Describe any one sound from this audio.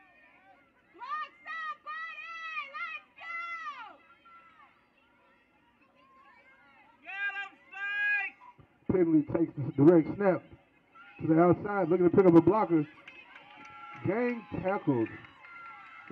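A crowd of spectators shouts and cheers loudly nearby.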